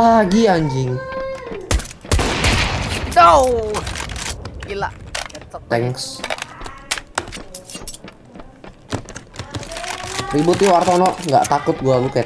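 Weapons click and clatter as they are switched.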